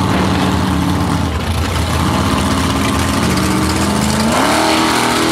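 Powerful race car engines idle loudly with a deep, lumpy rumble.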